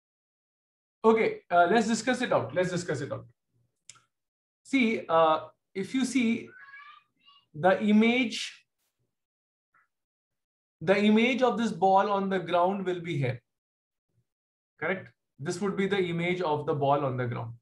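A man explains calmly in bursts, heard through an online call microphone.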